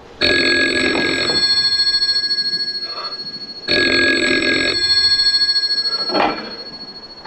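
A telephone bell rings loudly in bursts.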